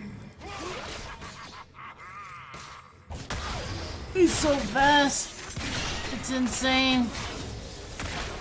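Game sound effects of spells and hits play.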